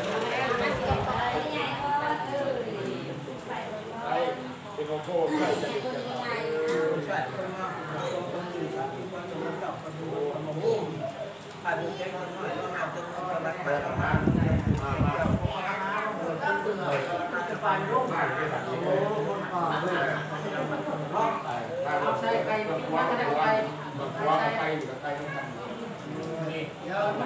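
Several men and women talk over one another nearby.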